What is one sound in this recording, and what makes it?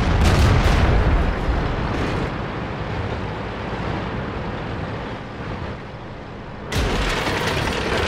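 A shell explodes on impact.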